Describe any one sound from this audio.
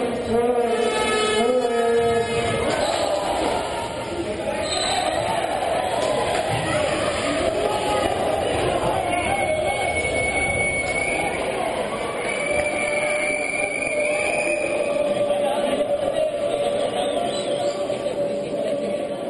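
A crowd cheers and chants loudly in an echoing indoor hall.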